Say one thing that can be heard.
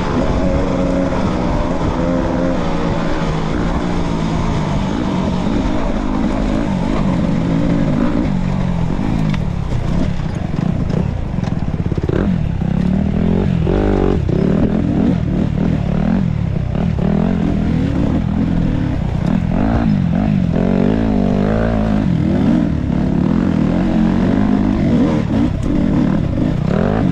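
A dirt bike engine revs up and down close by, loud and rough.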